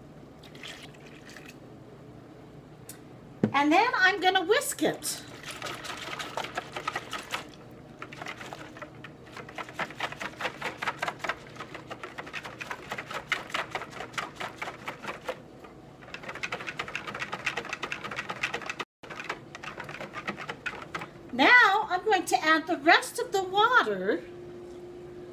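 Liquid pours into a bowl.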